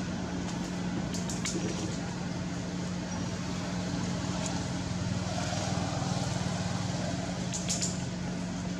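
A baby monkey gnaws and smacks at a watermelon rind.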